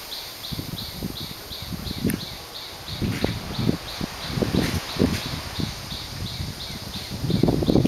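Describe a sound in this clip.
A small monkey scrambles and scratches over hollow bamboo poles.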